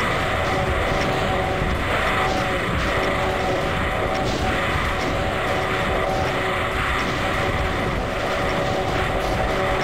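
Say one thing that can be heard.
Fireballs whoosh and explode over and over in a chaotic game battle.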